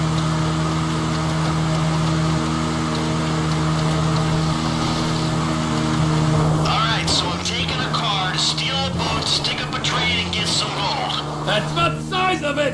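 A motorbike engine hums steadily as it rides over rough ground.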